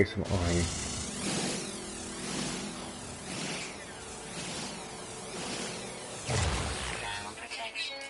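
A laser beam hums and crackles as it cuts into rock.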